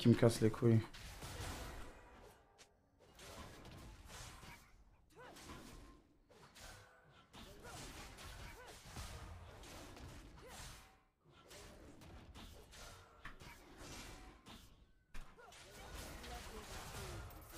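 Fighting sound effects from a game clash and chime quietly.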